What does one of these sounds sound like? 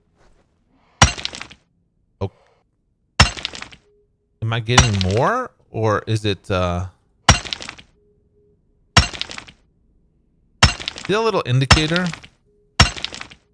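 Crystals snap off with sharp ringing clicks, again and again.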